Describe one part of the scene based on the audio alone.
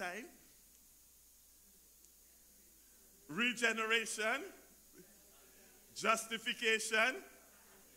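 A man preaches with animation through a microphone, speaking in short bursts.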